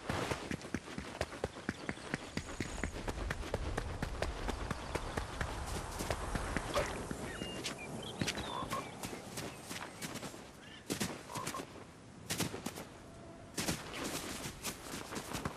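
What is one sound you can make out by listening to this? Quick footsteps run over stony ground.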